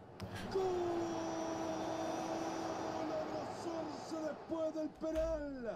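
A young man shouts a long, drawn-out cry of excitement into a microphone, close by.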